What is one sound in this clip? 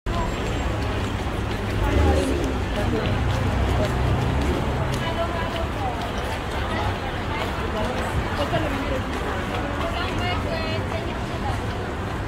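A crowd of people chatters nearby in a busy street.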